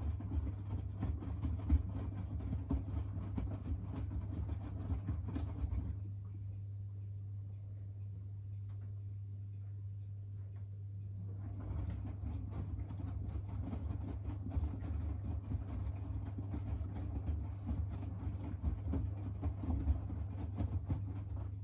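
A washing machine drum tumbles laundry with soft thumps and sloshing.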